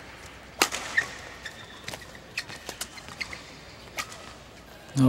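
Rackets strike a shuttlecock back and forth in a sharp rally.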